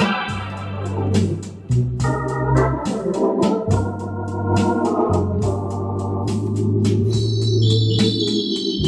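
An organ's built-in rhythm unit ticks a steady beat.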